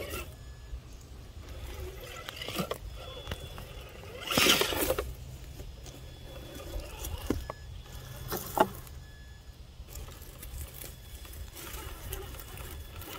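A small electric motor whirs.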